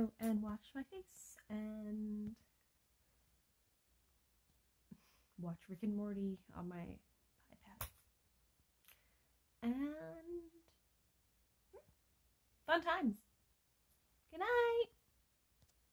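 A young woman talks close to the microphone in short expressive bursts, with pauses between.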